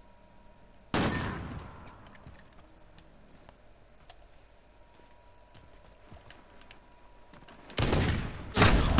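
A sniper rifle fires a loud, sharp shot that echoes away.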